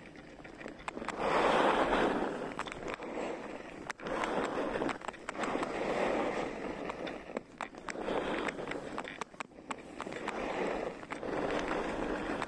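Skis scrape and hiss over packed snow in swelling bursts.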